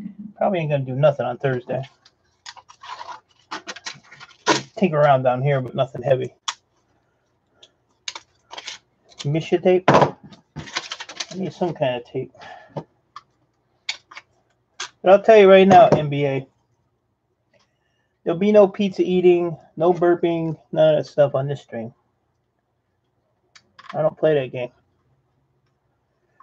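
Small plastic and metal parts click and clatter as hands pull them apart.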